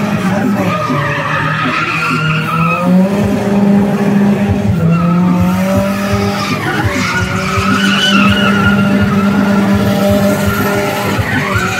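Car tyres squeal as they spin on asphalt.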